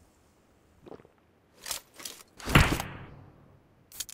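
A drink is gulped.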